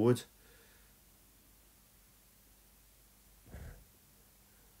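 Plastic cases click and scrape softly as a hand pulls them from a shelf.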